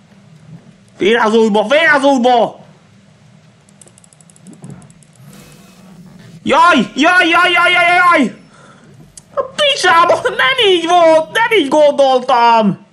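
A young man groans and wails loudly in frustration close to a microphone.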